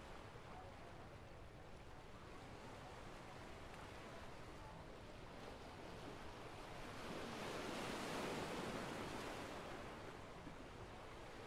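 Sea waves wash gently on a nearby shore.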